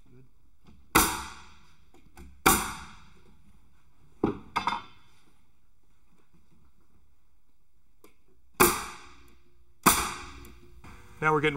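A nail gun fires with sharp, ringing bangs.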